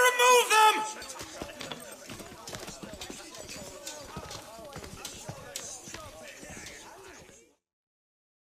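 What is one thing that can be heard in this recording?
A crowd murmurs and stirs.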